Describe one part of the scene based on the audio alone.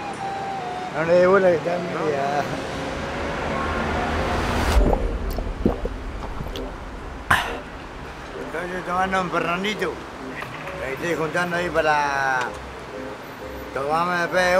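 A middle-aged man speaks close by with animation.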